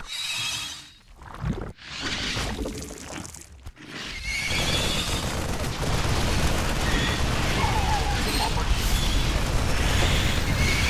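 Weapons fire and explosions crackle in a video game battle.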